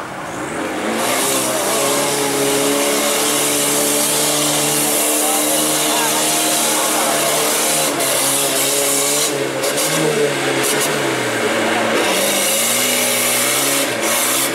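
Mud sprays and splatters from spinning tyres.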